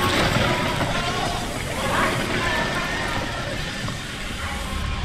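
Flames roar in a loud burst.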